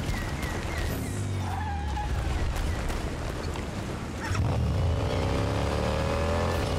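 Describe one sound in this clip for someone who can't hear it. A motorcycle engine starts up and revs loudly.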